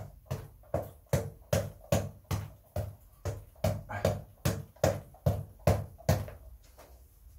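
A ball on a cord is punched in quick, steady thuds.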